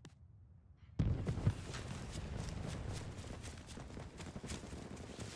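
Leaves and branches rustle loudly as someone rushes through dense bushes.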